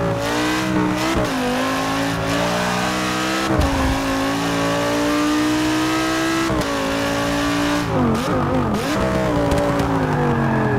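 A race car engine roars, rising in pitch as it speeds up and dropping sharply at each gear change.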